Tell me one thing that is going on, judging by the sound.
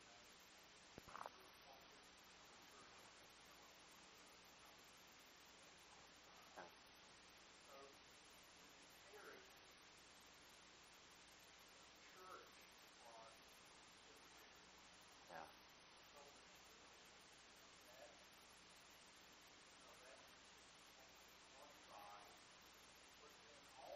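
A middle-aged man speaks slowly and calmly into a clip-on microphone, with long pauses.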